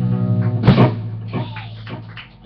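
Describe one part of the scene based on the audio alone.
A band plays a final loud chord with guitars and drums.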